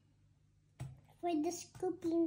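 A young girl speaks in a high voice nearby.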